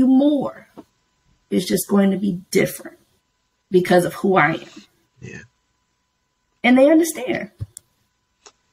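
A young woman talks expressively over an online call.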